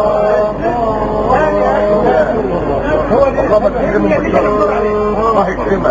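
A young man chants in a long, wavering melodic voice through a microphone and loudspeakers.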